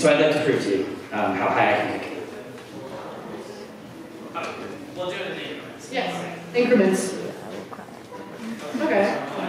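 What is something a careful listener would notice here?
A man speaks clearly into a microphone in an echoing hall.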